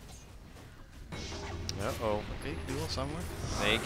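Fiery spells burst and crackle in a video game battle.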